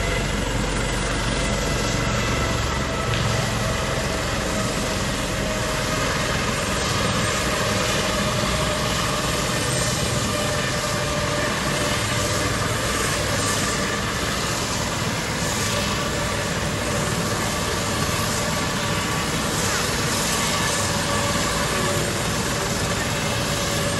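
A helicopter's rotor whirls and its turbine engine whines loudly close by.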